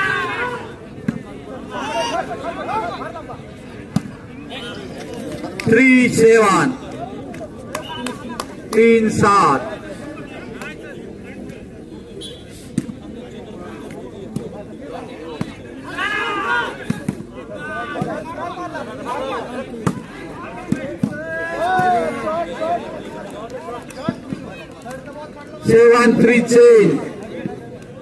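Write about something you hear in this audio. Men shout loudly across an outdoor court.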